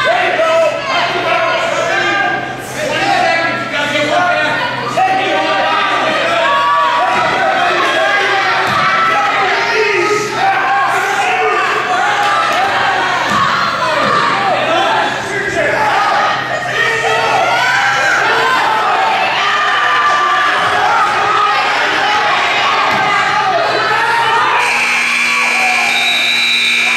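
A crowd of spectators shouts and cheers loudly in a large echoing hall.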